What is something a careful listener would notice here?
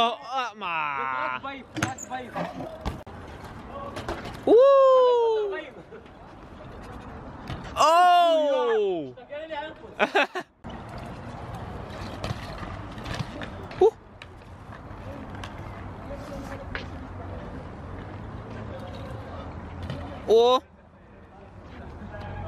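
Bike tyres roll over concrete.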